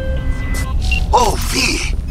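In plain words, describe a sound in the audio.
A man speaks casually through a phone call.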